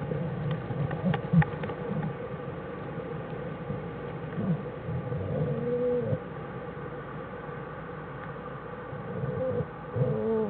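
A bear cub squeals and whimpers close by.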